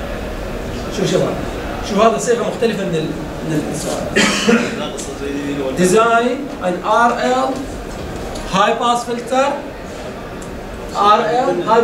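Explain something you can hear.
A man lectures calmly, close by.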